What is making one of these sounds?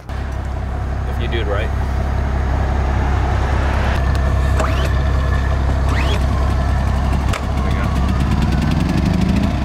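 A small engine hums steadily close by.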